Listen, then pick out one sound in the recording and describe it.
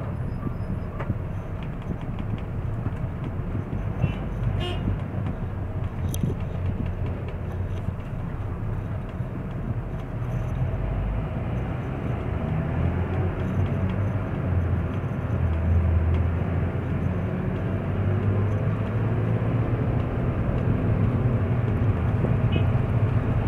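A car engine hums steadily from inside the moving car.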